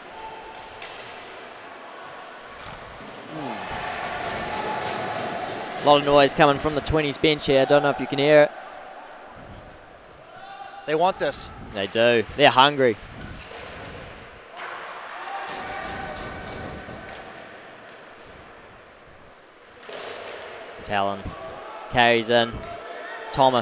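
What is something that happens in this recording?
Skates scrape and glide on ice in a large echoing rink.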